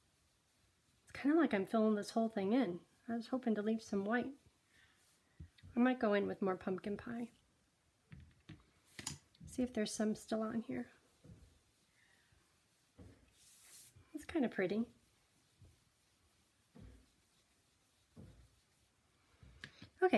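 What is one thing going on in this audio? A sponge dabs softly on paper.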